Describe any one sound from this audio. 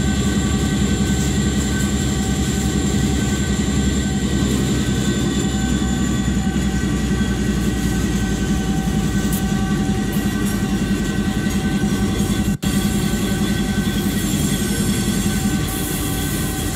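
A diesel locomotive engine rumbles and hums steadily.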